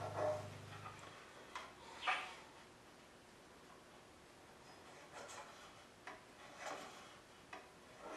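A small steel block clicks softly against a metal block.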